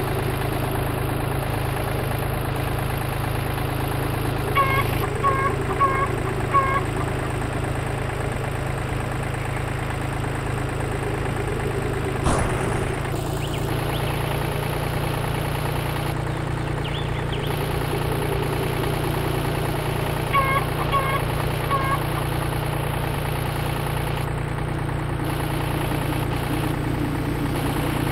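A tractor engine chugs steadily.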